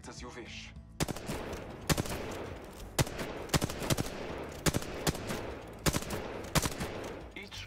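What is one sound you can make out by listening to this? A rifle fires single loud shots in quick succession.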